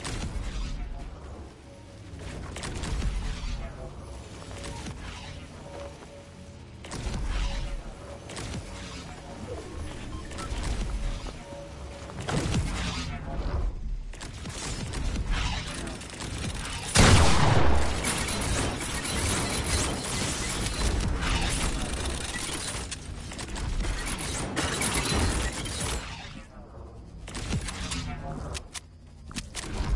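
Wooden walls and ramps are rapidly built with knocking thuds.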